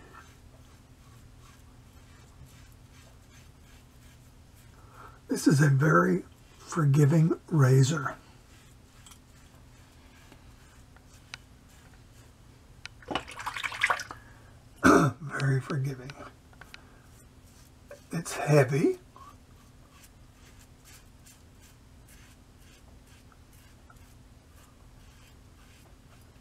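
A safety razor scrapes through lathered stubble.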